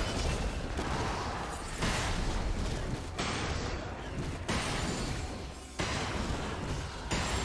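Game fighting effects whoosh and crackle.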